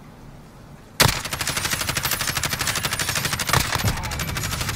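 A rifle fires in a fast, loud stream of shots.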